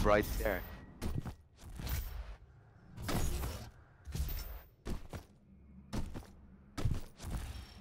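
Game footsteps and jump landings thud in quick bursts.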